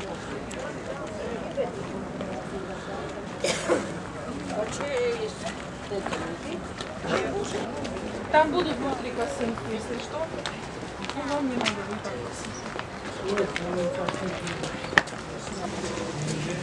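A crowd of elderly women and men chat nearby.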